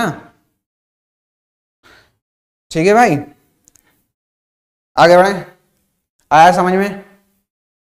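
A man speaks with animation into a close microphone, in short bursts with pauses.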